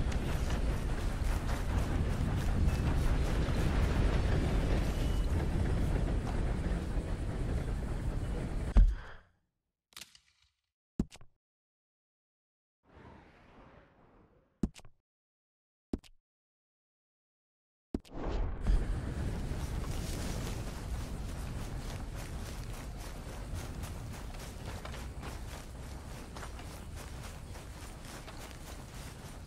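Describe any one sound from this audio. Footsteps swish through tall grass at a steady pace.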